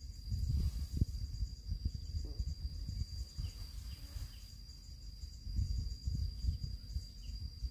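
Leaves rustle as plants are pulled by hand.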